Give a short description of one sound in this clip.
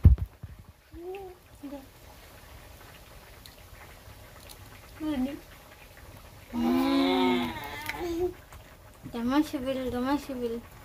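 A young woman speaks close by in short phrases.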